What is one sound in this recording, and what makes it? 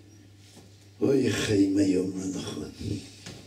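An elderly man speaks into a microphone, reading out in a chanting voice.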